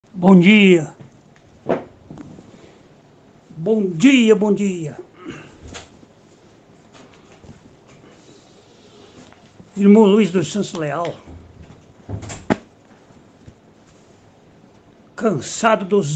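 An elderly man reads aloud slowly and solemnly, close to the microphone, with long pauses.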